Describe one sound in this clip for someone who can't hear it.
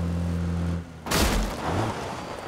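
A jeep crashes through a wooden fence with a loud crack.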